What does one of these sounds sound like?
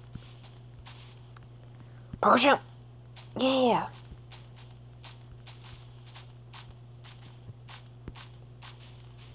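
Footsteps crunch softly on grass in quick, even steps.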